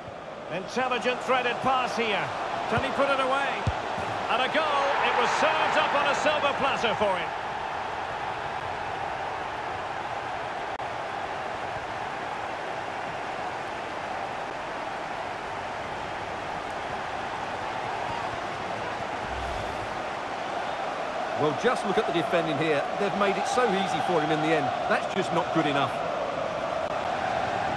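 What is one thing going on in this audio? A large crowd roars and cheers steadily.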